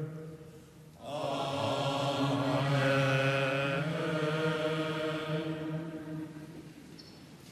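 A group of men sings together in response.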